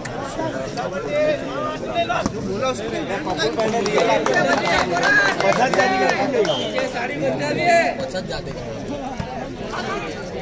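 Young men on the court call out to each other loudly.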